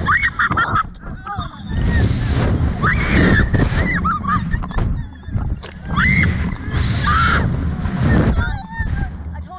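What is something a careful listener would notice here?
A young woman screams and shrieks loudly close by.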